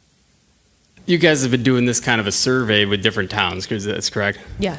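A man speaks calmly through a microphone in a room.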